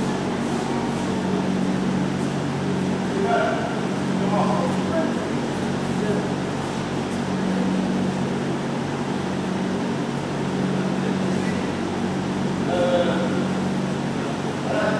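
Children and adults chatter faintly in the distance in a large echoing hall.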